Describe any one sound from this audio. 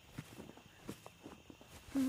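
Footsteps tread softly on grass.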